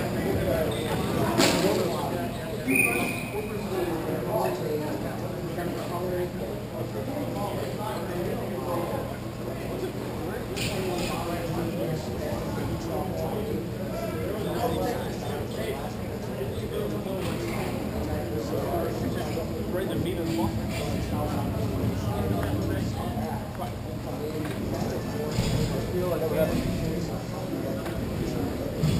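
Roller skate wheels roll and scrape on a hard floor in a large echoing hall.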